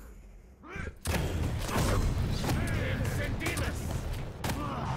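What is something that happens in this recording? Gunfire and explosions blast in rapid bursts.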